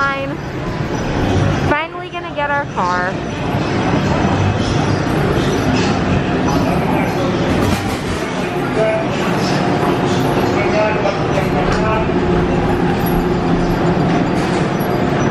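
Many people chatter at once in a large echoing hall.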